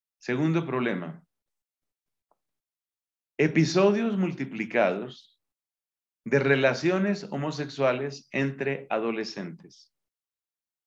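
A middle-aged man speaks calmly into a microphone, heard as if over an online call, with pauses.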